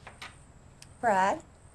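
A woman speaks briefly and close by.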